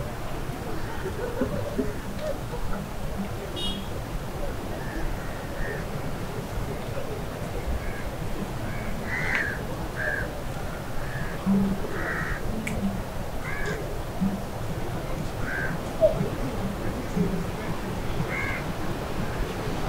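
Voices of passers-by murmur in the distance.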